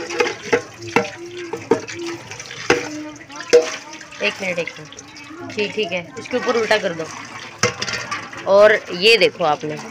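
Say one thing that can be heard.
Tap water runs and splashes into a metal pan.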